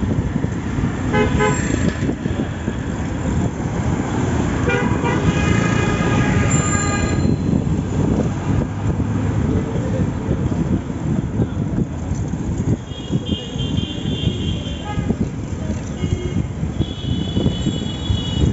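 Vehicle horns honk repeatedly nearby.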